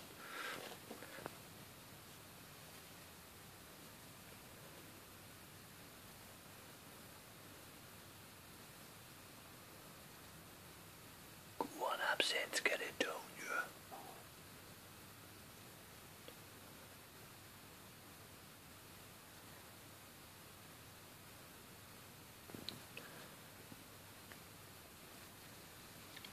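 A snake rustles slowly through dry bedding.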